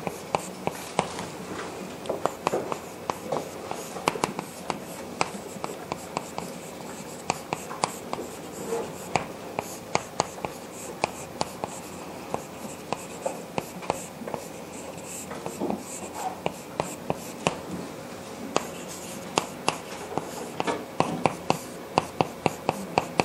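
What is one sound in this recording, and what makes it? Chalk taps and scrapes on a blackboard in quick strokes.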